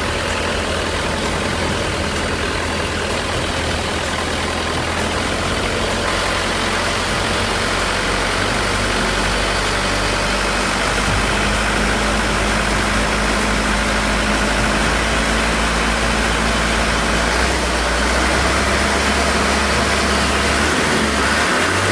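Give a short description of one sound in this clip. A diesel engine idles loudly close by with a steady rumble.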